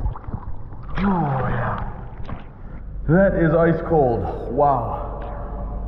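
A young man gasps and talks breathlessly after surfacing.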